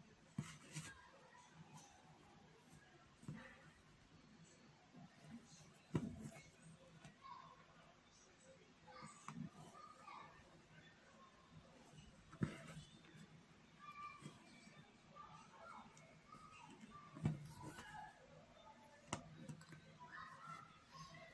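Thread rustles softly as it is pulled through fabric.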